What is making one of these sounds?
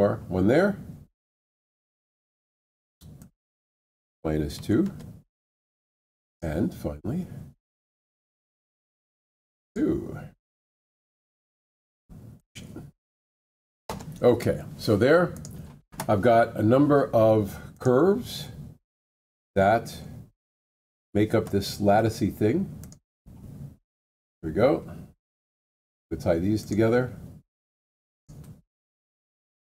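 A middle-aged man speaks calmly into a microphone, explaining in short bursts with pauses.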